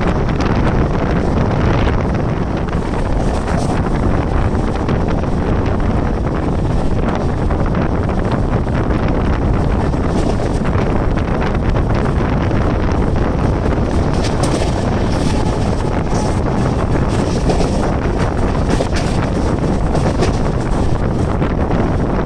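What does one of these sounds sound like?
Train wheels rumble and clatter steadily along the rails.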